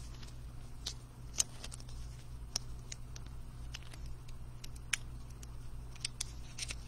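A plastic sleeve crinkles and rustles as it is peeled off a card.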